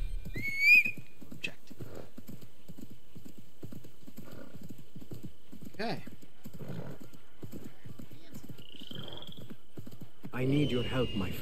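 Horse hooves gallop rapidly on a dirt path.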